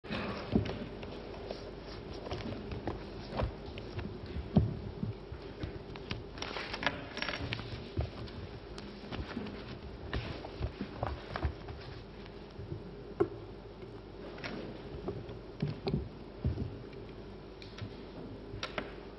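Keyboards click as people type on laptops.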